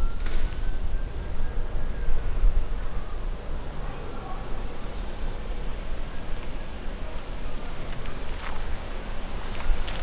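A car engine hums as it slowly pulls a trailer up a ramp.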